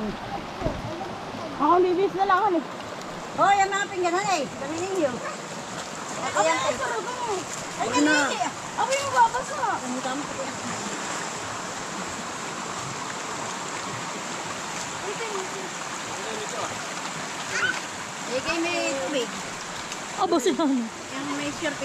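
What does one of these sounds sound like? A shallow stream babbles over rocks.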